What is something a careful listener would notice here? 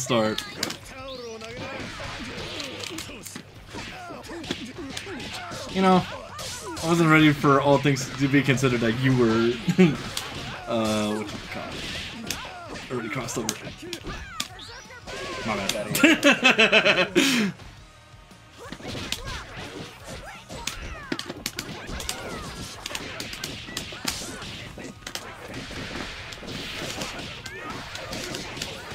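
Fighting game blows land with sharp smacks and thuds.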